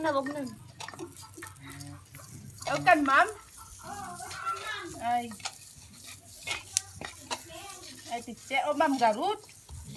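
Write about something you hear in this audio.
Hot liquid sizzles and hisses as it is ladled.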